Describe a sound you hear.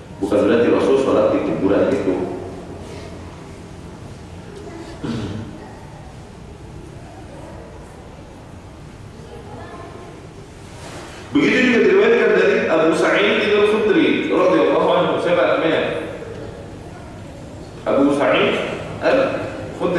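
A man speaks calmly into a nearby microphone, in bursts with pauses.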